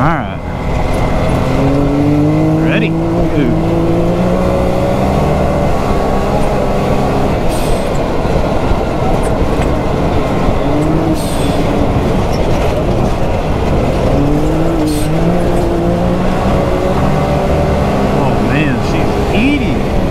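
An off-road vehicle's engine roars and revs up and down.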